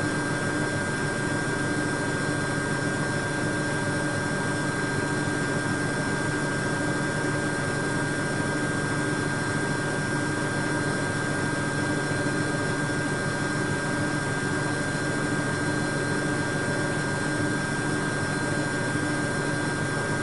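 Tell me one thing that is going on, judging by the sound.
A washing machine drum turns with a steady hum and whir.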